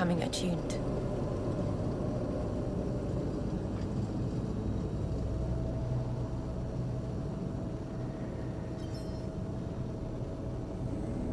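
A spacecraft engine hums with a low steady roar.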